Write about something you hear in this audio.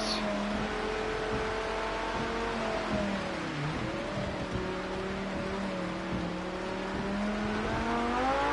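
Tyres hiss on a wet track.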